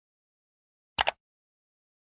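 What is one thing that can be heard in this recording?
A computer mouse clicks twice quickly.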